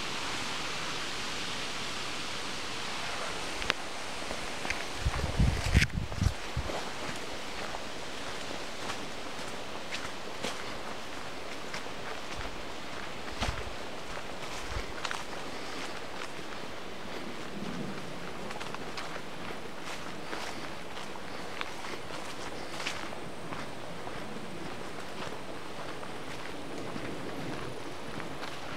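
Footsteps crunch on a gravel and leaf-covered path.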